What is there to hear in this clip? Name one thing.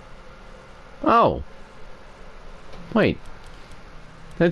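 A game menu gives short falling chime tones as selections change.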